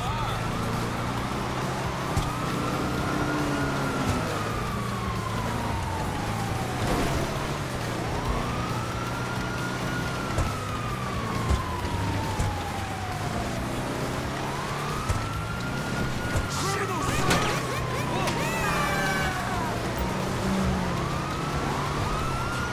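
A car engine hums steadily as the car drives along.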